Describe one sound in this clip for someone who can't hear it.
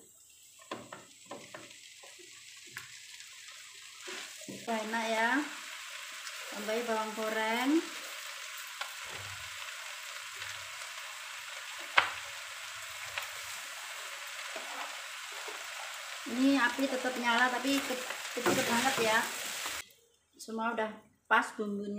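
A spatula scrapes and clatters against a metal pan.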